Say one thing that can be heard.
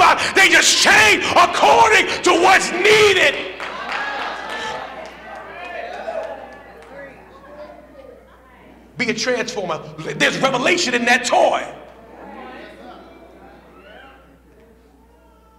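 A man preaches with fervour into a microphone, his voice loud in an echoing hall.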